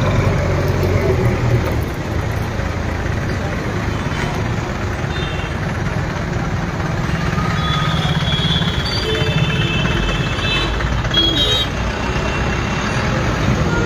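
Engines of traffic rumble steadily nearby.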